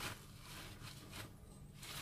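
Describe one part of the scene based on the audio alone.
A paper towel pats against meat.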